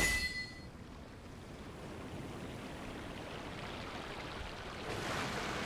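A boat splashes through water.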